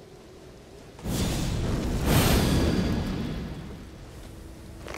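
A fiery spell flares up with a loud roaring whoosh.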